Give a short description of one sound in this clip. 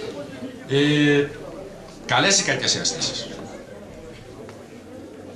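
An audience murmurs quietly.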